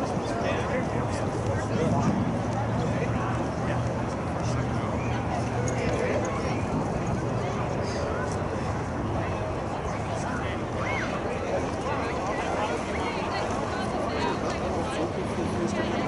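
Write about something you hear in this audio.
Players call and shout to each other across an open field in the distance.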